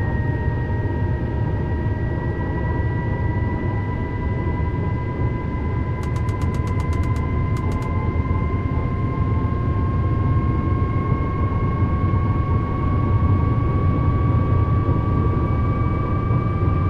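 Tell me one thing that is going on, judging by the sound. An electric train motor whines, rising slowly in pitch as it speeds up.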